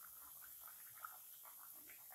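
A slice of food drops into hot oil with a soft splash.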